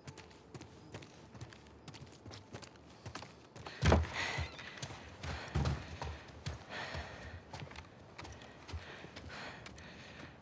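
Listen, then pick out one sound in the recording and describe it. Footsteps creak softly on wooden floorboards.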